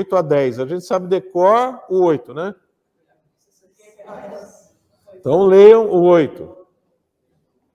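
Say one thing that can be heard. An older man speaks calmly and clearly into a close microphone, pausing between phrases.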